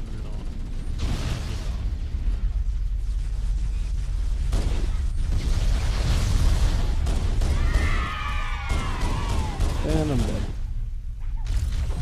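A pistol fires sharp shots one after another.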